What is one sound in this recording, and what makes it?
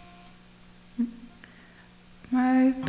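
An electric guitar is plucked.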